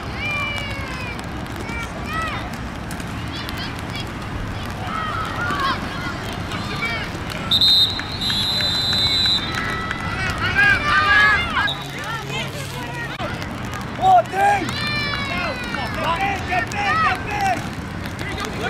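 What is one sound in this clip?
Adult spectators shout and cheer from nearby outdoors.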